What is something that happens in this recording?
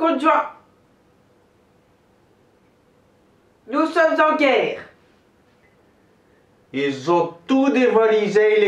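A young man speaks close by in short, lively bursts.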